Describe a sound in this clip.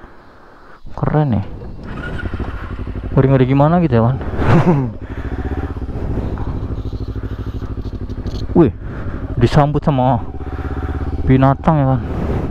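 A motorcycle engine revs up sharply in short bursts and drops back.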